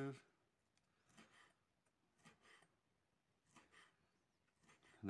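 A knife taps on a cutting board as it chops.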